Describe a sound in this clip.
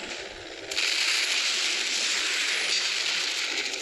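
Explosions boom and crackle in quick succession.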